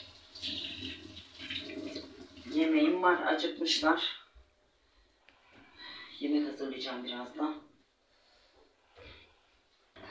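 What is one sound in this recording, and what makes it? A cloth wipes across a countertop.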